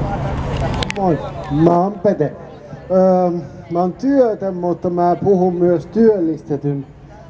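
A man speaks calmly into a microphone, heard through a loudspeaker outdoors.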